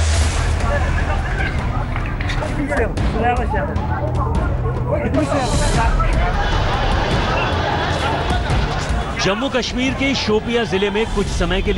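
A crowd of men shouts and clamours outdoors.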